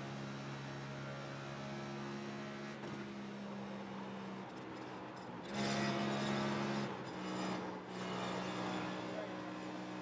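A race car engine drones loudly at high speed, its pitch shifting as the car lifts and accelerates.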